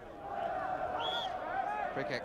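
A referee blows a short, sharp whistle.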